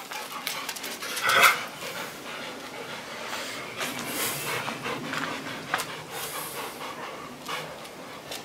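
Dog paws patter on paving stones.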